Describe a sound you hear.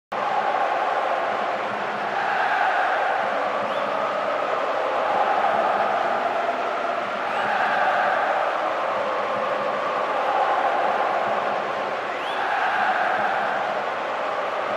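A large stadium crowd chants and roars steadily.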